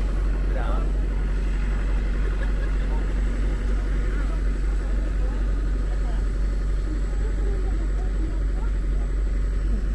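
People's voices chatter nearby.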